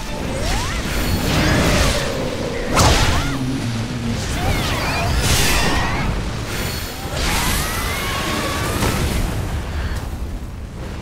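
Fiery blasts roar and crackle in a fierce fight.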